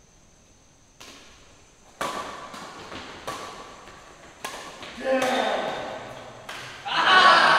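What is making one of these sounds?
Badminton rackets smack a shuttlecock back and forth in an echoing indoor hall.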